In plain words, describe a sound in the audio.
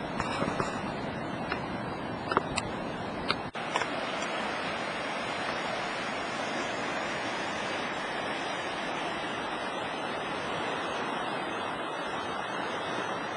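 A river rushes steadily over rocks.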